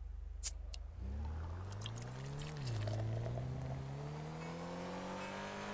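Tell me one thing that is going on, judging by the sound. A car engine revs up and rises in pitch as the car speeds away.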